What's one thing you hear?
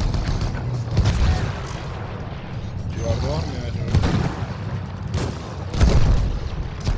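Shells explode nearby with heavy booms.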